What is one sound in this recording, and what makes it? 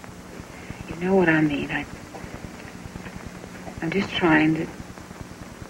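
A woman speaks calmly, close by, in short bursts.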